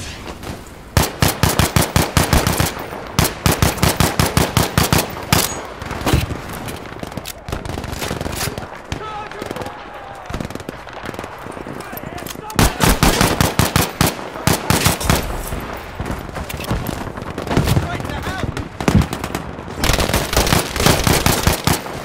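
Rapid gunfire rattles nearby in bursts.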